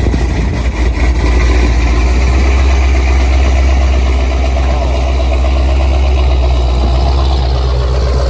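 A powerful car engine idles with a deep, steady rumble.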